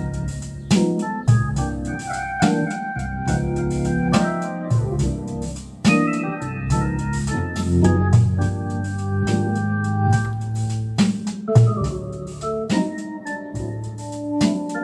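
A rhythmic percussion backing from an organ ticks along steadily.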